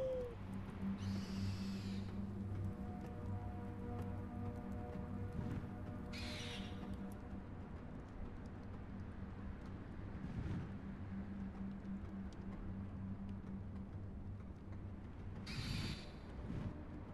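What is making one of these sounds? A large bird screeches loudly several times.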